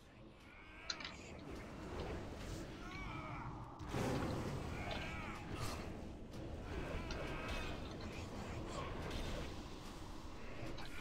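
Game spell effects whoosh and crackle.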